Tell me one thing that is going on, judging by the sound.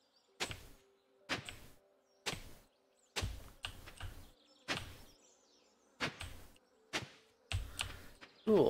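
An axe chops wood in sharp, repeated knocks.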